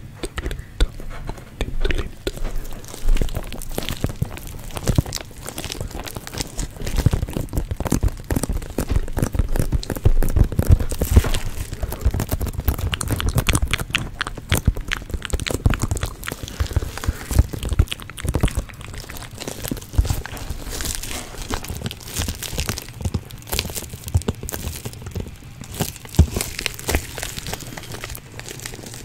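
Plastic crinkles and crackles as hands handle it close to a microphone.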